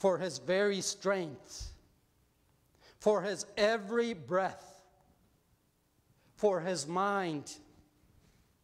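An elderly man speaks slowly and deliberately through a microphone in a reverberant hall.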